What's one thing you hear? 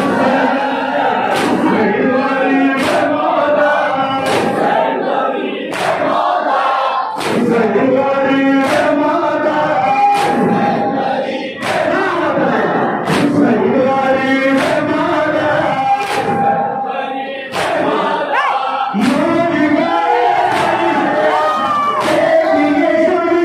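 A young man chants loudly into a microphone in an echoing hall.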